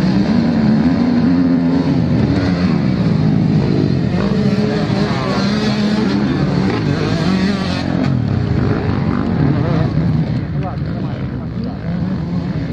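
Dirt bike engines roar and whine as they race past.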